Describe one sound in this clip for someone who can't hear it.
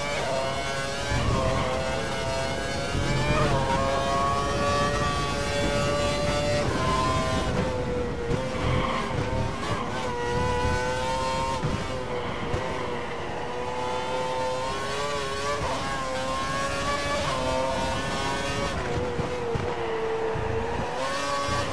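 A racing car engine screams at high pitch, rising through the gears and dropping as it brakes.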